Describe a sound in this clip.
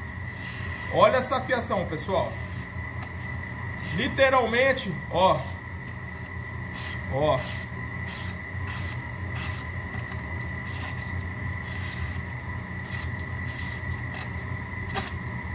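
A knife blade slices through paper with soft rasps.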